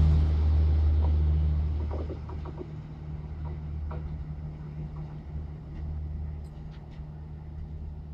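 Train wheels clatter over rail joints as the train pulls away.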